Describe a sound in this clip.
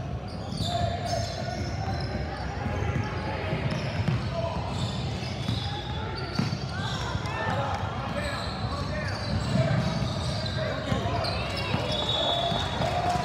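Girls shout and call out to each other on the court.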